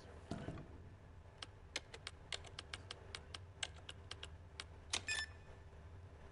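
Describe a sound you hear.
Keypad buttons beep and click in quick succession.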